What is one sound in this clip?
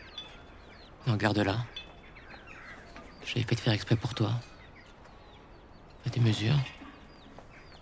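A man speaks in a low, calm voice, close by.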